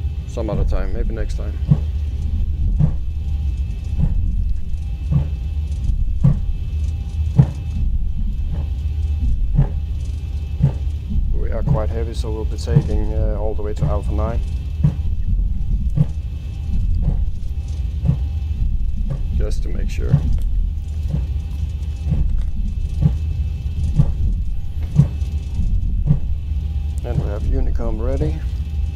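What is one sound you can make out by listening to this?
Aircraft wheels thump over runway joints at a steady beat.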